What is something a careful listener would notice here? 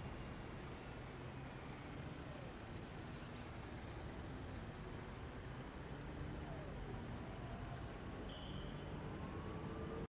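City traffic hums steadily with cars passing.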